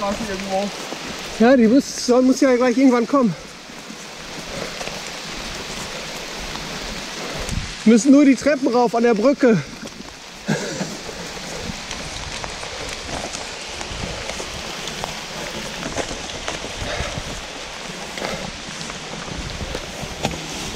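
A loaded bicycle rattles as it is pushed over rough ground.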